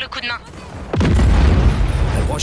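A loud explosion rumbles.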